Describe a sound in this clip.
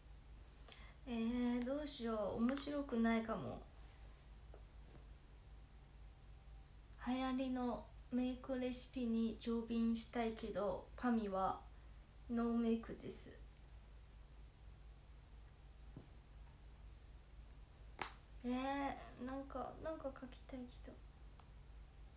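A young woman speaks softly and close by, in short bursts with pauses.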